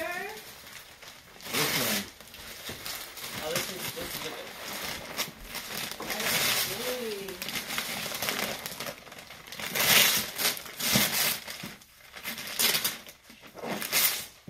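Wrapping paper rustles and tears as a young girl opens a present.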